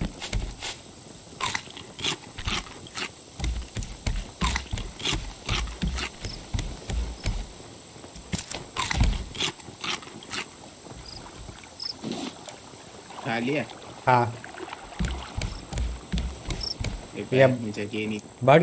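Footsteps thud on a wooden deck.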